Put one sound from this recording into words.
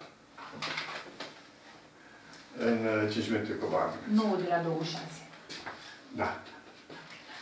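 An elderly man talks on a phone close by, in a calm voice.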